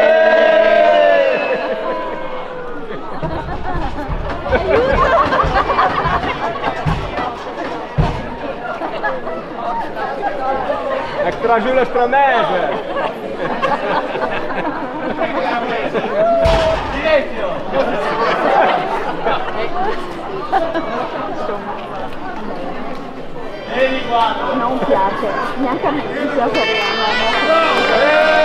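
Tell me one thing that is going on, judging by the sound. An accordion plays a lively tune outdoors.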